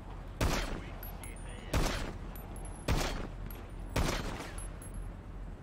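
A pistol fires single shots that echo outdoors.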